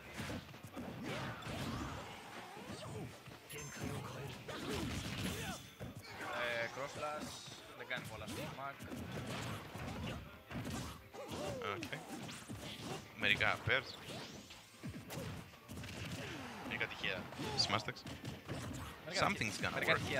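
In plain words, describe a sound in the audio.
Punches and blows from a fighting video game thud and crack rapidly.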